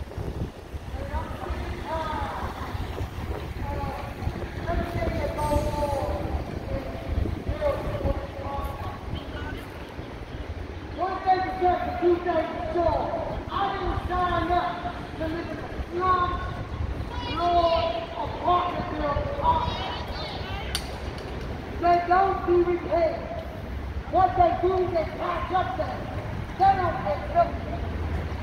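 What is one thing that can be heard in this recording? A crowd of protesters chants in unison some distance away.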